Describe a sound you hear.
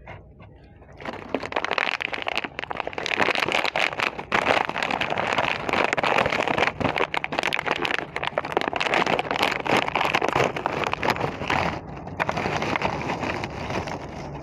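A plastic snack bag crinkles and rustles loudly as it is handled.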